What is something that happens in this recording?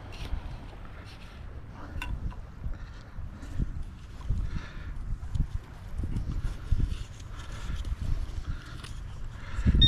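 A hand scrapes and scoops through loose sand.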